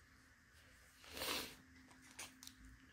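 A sheet of paper rustles briefly.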